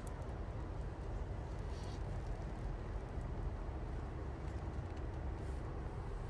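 A hand softly strokes a cat's fur.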